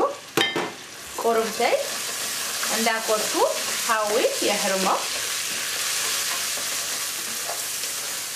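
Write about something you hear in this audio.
A wooden spoon stirs and scrapes food in a metal pot.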